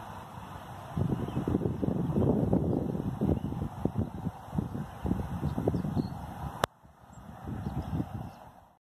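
Wind gusts roar against the microphone outdoors.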